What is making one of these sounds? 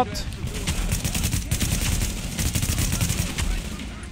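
Rapid rifle shots ring out.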